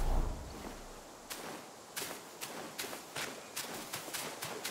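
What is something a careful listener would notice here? Footsteps crunch on a forest path.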